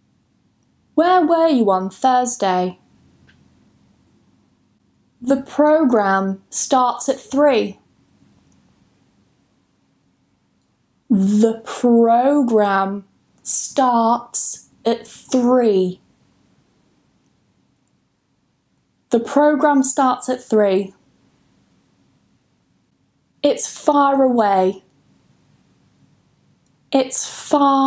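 A young woman speaks clearly and slowly into a close microphone, pausing between phrases.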